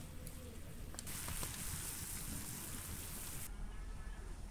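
Liquid boils and bubbles hard in a pan.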